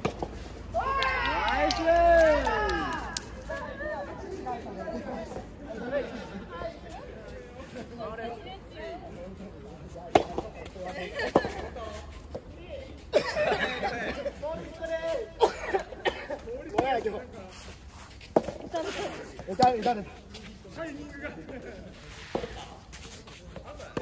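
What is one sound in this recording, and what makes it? Young men call out and talk nearby, outdoors.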